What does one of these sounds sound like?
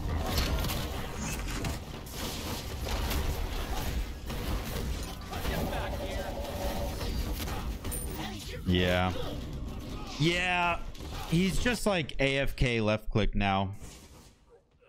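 Video game combat effects of slashes and blasts clash loudly.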